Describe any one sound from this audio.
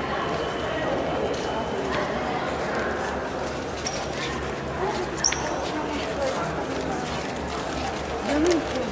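A crowd of people chatters nearby in a large echoing hall.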